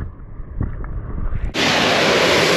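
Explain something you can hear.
Muffled bubbles gurgle underwater.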